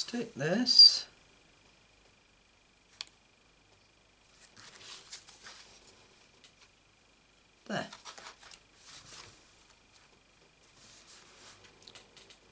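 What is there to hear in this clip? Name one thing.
Card stock rustles and slides as hands handle it.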